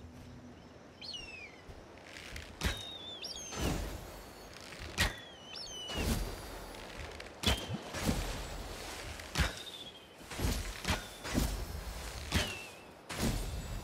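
A large bird screeches repeatedly.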